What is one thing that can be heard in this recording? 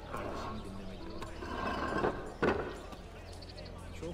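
A heavy stone lid scrapes and thuds shut over a well.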